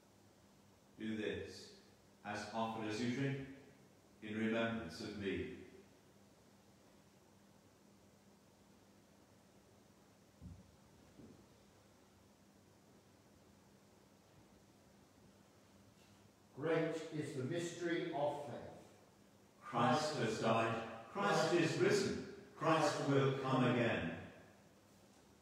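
A man chants slowly and solemnly in an echoing room.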